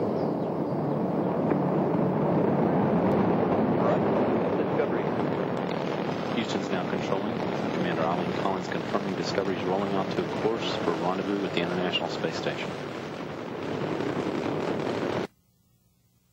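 A rocket engine roars with a deep, steady rumble.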